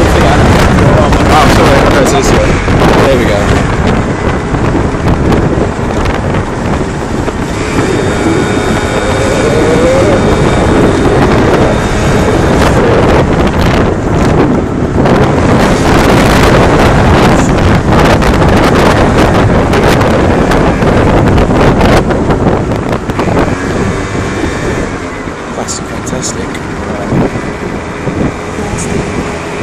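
A moped engine hums while riding along a street.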